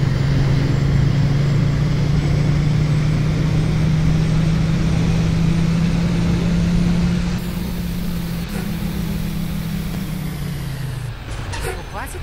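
A bus engine drones steadily and then winds down as the bus slows.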